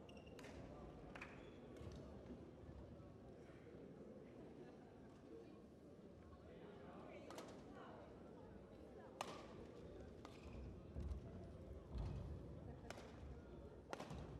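A shuttlecock is struck sharply by rackets in a large echoing hall.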